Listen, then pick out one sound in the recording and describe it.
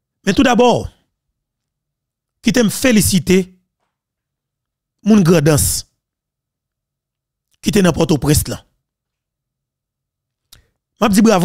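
A man speaks closely into a microphone in short, emphatic bursts with pauses between.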